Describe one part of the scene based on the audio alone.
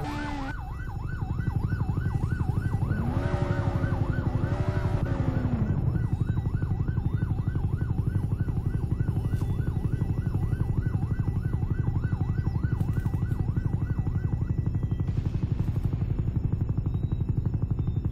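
A video game helicopter's rotor thumps as it flies.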